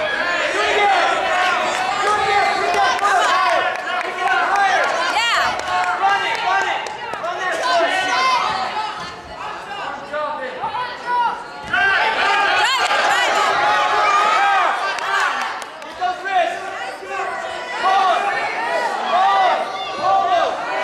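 Several people shout encouragement loudly in a large echoing hall.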